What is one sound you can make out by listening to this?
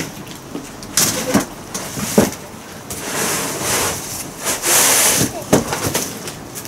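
A plastic bag rustles as a woman handles it.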